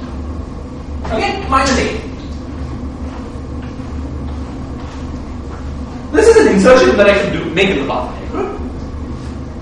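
A man speaks, lecturing.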